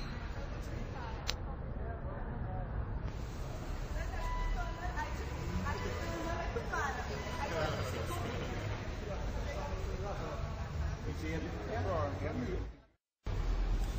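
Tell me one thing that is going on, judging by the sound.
Young men and women chatter nearby.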